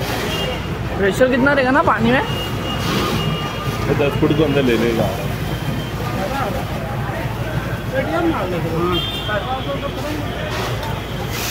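A fire hose sprays water.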